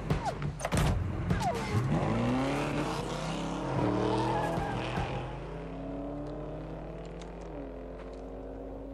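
A car engine revs loudly and rumbles.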